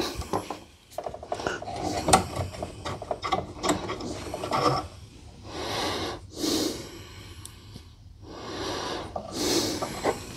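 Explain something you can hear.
A hand tool clicks and scrapes on metal engine parts.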